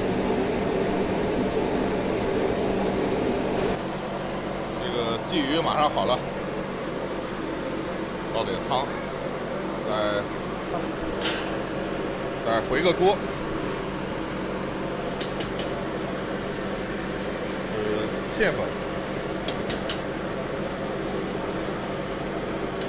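A gas burner roars steadily.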